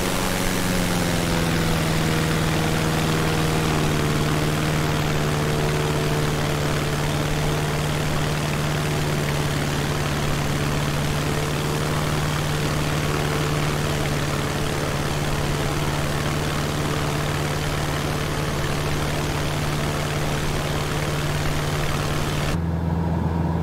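Wind rushes loudly past a small plane.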